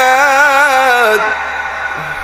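A man chants in a long, wavering melodic voice through a loudspeaker, then falls silent.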